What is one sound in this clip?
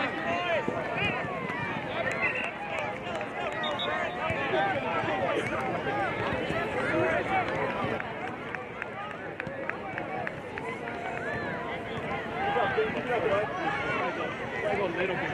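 A crowd of adults and children chatters and calls out outdoors.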